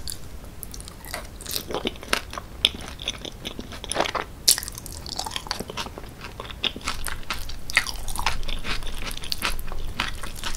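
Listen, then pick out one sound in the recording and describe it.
A woman chews soft food wetly and close up.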